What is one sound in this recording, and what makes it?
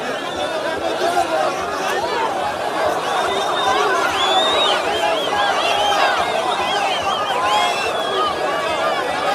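A large crowd outdoors cheers, shouts and whistles loudly.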